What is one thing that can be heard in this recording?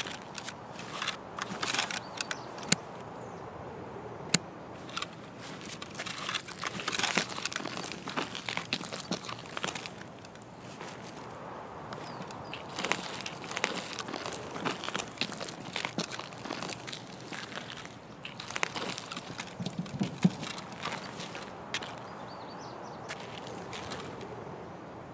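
Footsteps crunch over gravel.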